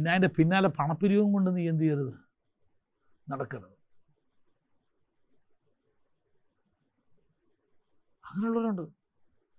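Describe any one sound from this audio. An elderly man speaks with animation through a microphone, pausing between phrases.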